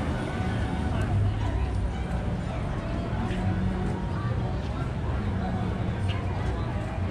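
A crowd of people chatters outdoors nearby.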